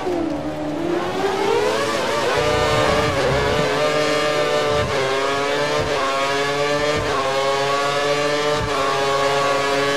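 A racing car engine screams, rising in pitch as it speeds up and dropping briefly at each gear change.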